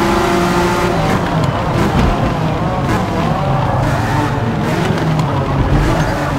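A racing car engine drops back sharply with a burbling, popping sound as the car brakes for a corner.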